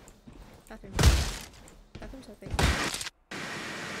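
Heavy blows thud loudly twice.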